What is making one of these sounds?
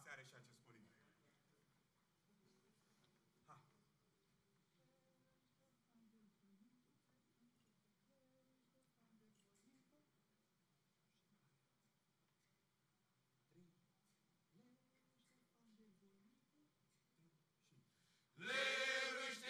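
A man sings alone, quietly and slowly.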